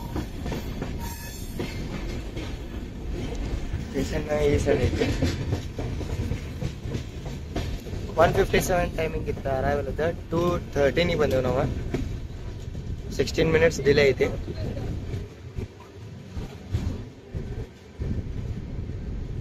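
A train rolls along the tracks with a steady low rumble.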